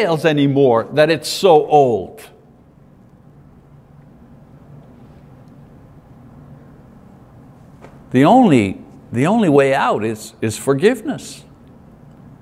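A man speaks calmly through a microphone, pausing between phrases.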